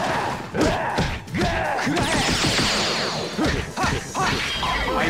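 Punches and kicks land with sharp impact thuds.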